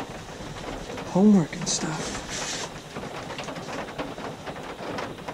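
Cardboard boxes and papers rustle and scrape close by.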